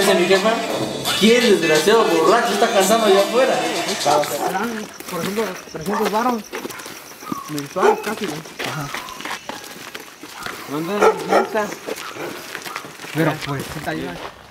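Several young men talk close by.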